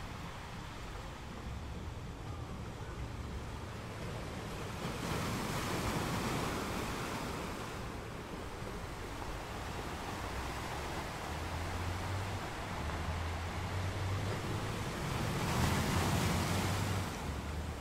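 Ocean waves crash and roar against rocks.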